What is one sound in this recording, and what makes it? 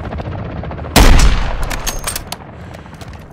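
A rifle fires a single loud shot that rings out briefly.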